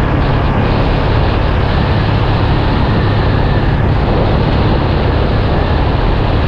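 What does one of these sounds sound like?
Tyres roar steadily on an asphalt road.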